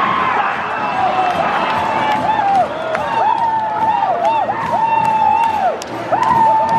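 A man nearby cheers loudly.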